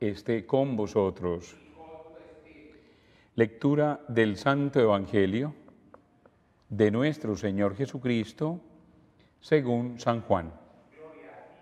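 A middle-aged man speaks calmly into a microphone, with a slight echo.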